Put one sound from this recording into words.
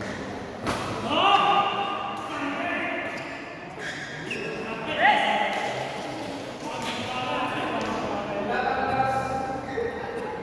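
Sports shoes squeak loudly on a court floor.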